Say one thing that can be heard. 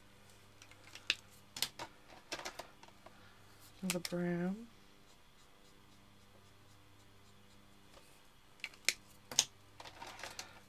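Plastic markers clatter against each other.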